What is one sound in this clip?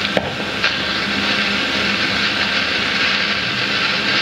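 A burning fuse hisses steadily and sputters.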